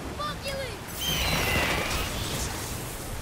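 A magical blast bursts with a crackling whoosh.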